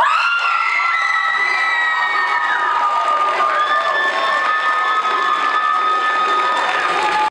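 Audience members whistle shrilly.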